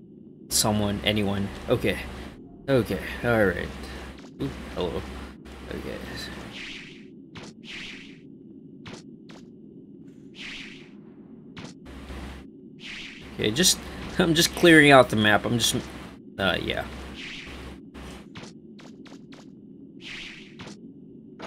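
Short electronic whooshes and thuds sound as a video game character runs and jumps.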